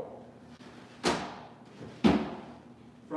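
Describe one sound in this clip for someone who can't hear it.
A board thumps down on a roller.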